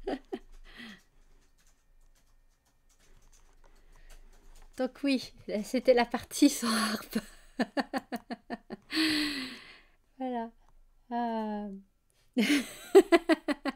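A young woman speaks with animation into a microphone, laughing at times.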